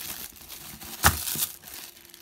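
A small box knocks down onto a hard surface.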